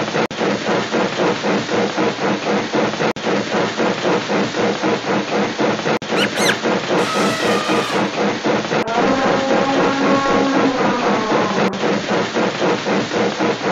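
A cartoon train rattles steadily along the tracks.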